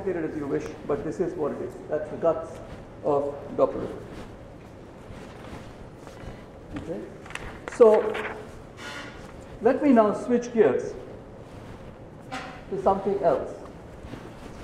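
An elderly man lectures calmly through a microphone in an echoing hall.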